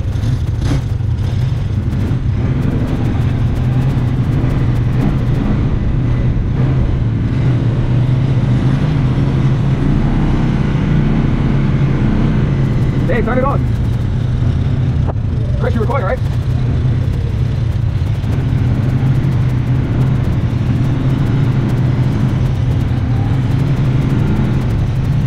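An off-road vehicle engine rumbles steadily up close.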